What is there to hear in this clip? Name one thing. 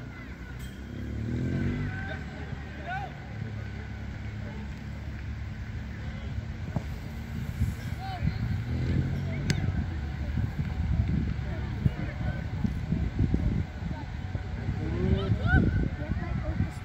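Young players call out to each other in the distance outdoors.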